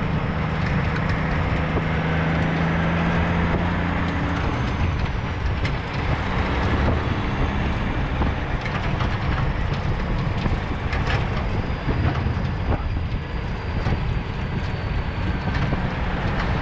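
A truck's diesel engine rumbles steadily while driving.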